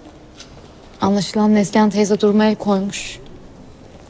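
A young woman speaks tensely, close by.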